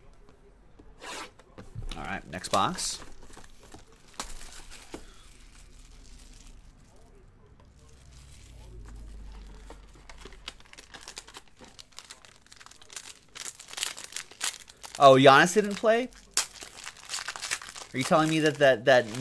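Plastic wrapping crinkles as hands handle card packs.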